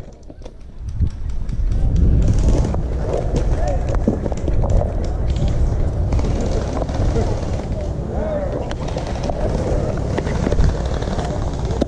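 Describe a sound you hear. Dry branches scrape and rustle close by.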